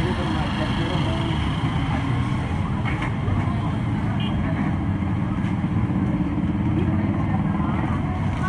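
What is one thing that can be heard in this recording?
A small petrol engine runs with a steady, loud rumble close by.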